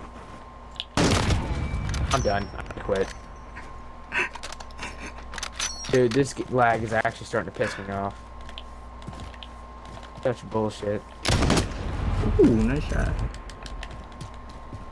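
A rifle fires loud, booming shots.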